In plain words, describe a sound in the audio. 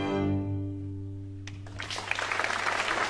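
A string ensemble holds a final chord that slowly fades.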